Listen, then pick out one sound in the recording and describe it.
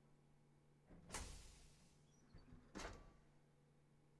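A heavy metal lid whooshes open.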